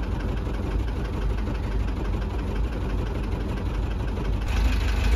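Wind buffets the microphone outdoors with a low, steady rumble.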